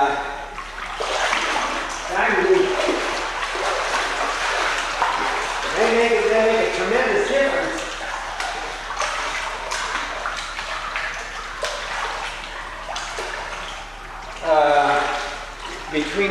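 Water splashes as a person wades through it.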